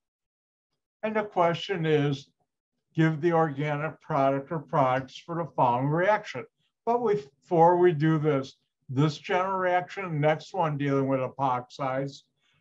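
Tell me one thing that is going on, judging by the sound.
An elderly man speaks calmly over an online call, explaining.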